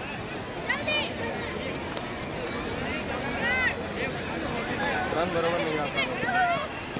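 A crowd chatters steadily in the distance.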